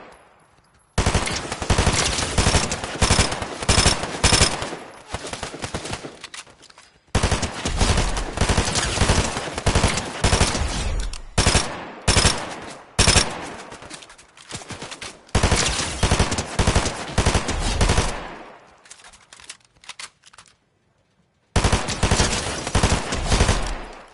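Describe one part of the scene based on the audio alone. Rapid gunfire bursts loudly in a game.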